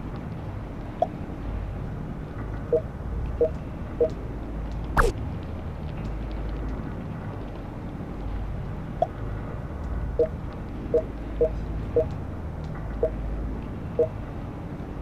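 Short electronic blips chime now and then.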